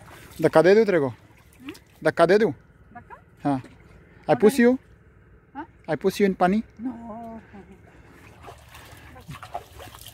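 Water splashes lightly as hands rinse in a tank.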